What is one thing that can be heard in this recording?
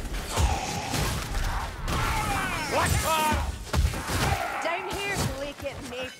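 Blades hack and slash into creatures with heavy thuds.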